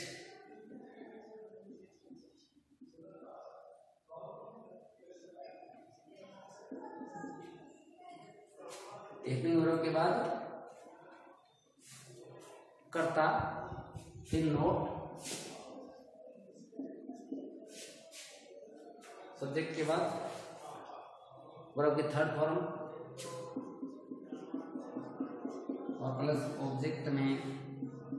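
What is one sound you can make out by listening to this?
A middle-aged man explains calmly and clearly, close by.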